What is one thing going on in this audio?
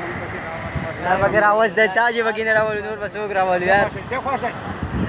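A man speaks animatedly close to a phone.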